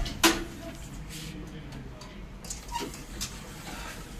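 A finger presses an elevator button with a click.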